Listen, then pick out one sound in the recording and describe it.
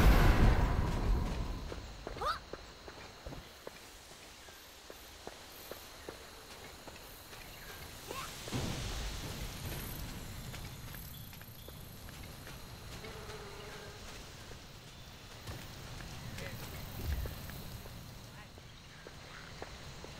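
Footsteps patter on grass as a character runs.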